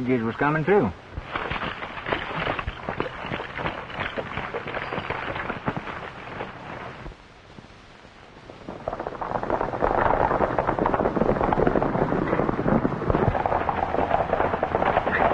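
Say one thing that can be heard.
Horses gallop, hooves pounding on dirt.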